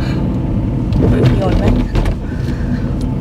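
A man talks calmly close by inside the car.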